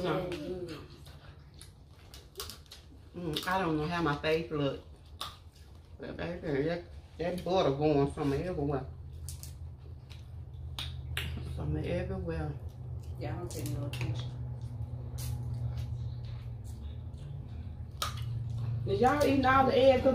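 Food crunches and smacks as women eat.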